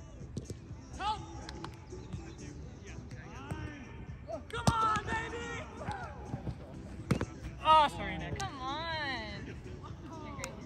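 Young men shout and call out with excitement outdoors.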